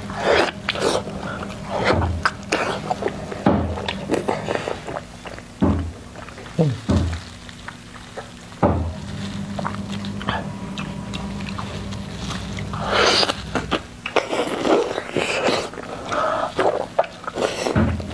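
A young woman bites into crisp bread with a crunch.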